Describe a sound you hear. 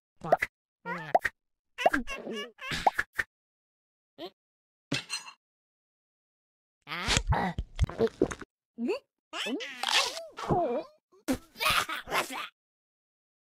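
A cartoon cat makes squeaky cartoon voice sounds and grunts.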